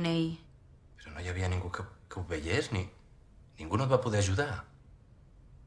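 A man asks questions in a tense, animated voice nearby.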